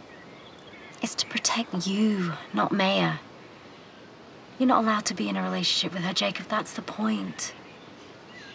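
A young woman answers with concern, close by.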